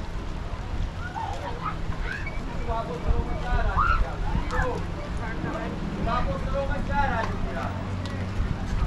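Distant people on a beach chatter and call out faintly.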